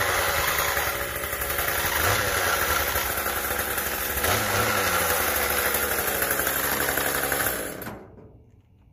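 A string trimmer engine runs loudly and then cuts off.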